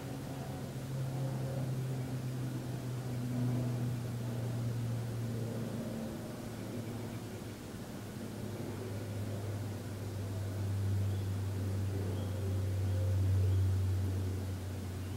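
A man hums a low, steady drone up close, dropping to a lower pitch partway through.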